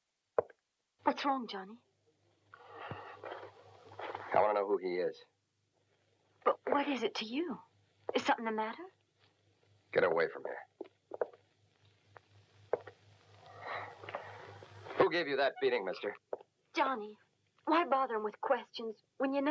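A young man speaks in a low, tense voice.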